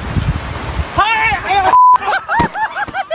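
A man cries out in alarm.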